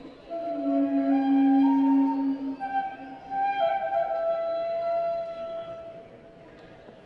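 A small band plays guitar and strings in a large echoing hall.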